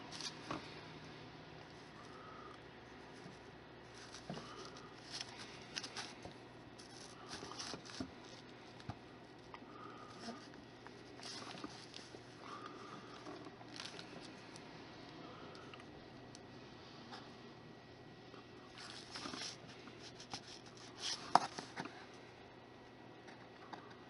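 A wooden tool scrapes and taps softly against clay.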